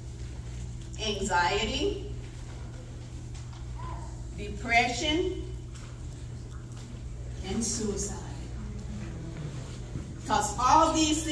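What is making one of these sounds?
A woman speaks in bursts into a microphone, heard over loudspeakers in an echoing room.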